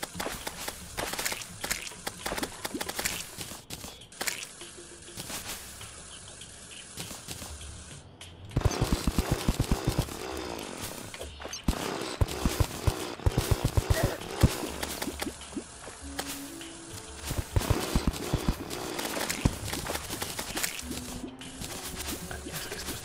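Video game magic bolts zap and crackle in quick bursts.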